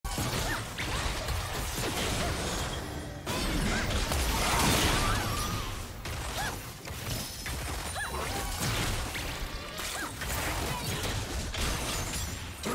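Magic blasts, whooshes and hits clash rapidly in a video game battle.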